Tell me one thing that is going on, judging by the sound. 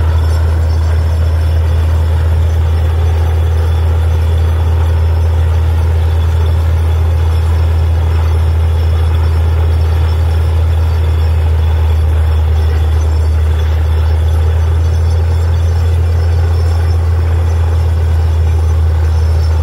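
A drilling rig engine rumbles loudly and steadily nearby.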